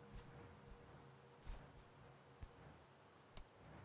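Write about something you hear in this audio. Hands grip and clank on a metal pole while climbing.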